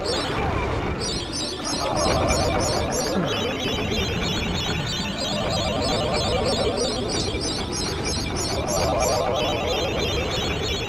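A magical shimmer twinkles with repeated bright chimes.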